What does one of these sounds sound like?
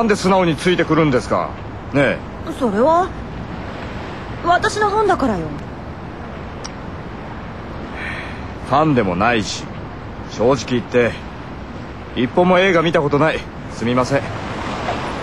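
A young man speaks in a close, quiet conversation.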